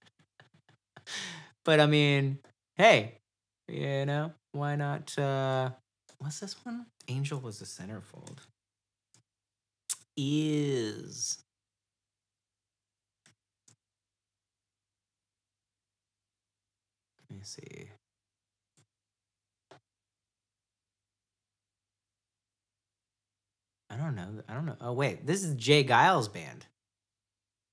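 A man talks cheerfully into a close microphone.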